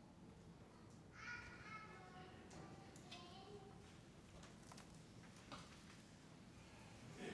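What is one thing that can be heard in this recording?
Footsteps sound softly in a large echoing hall.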